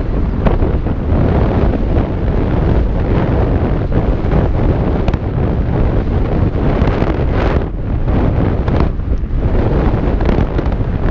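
Wind rushes loudly past close by.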